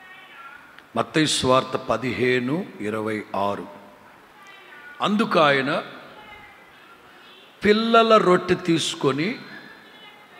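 A middle-aged man speaks with animation into a microphone in a room that echoes.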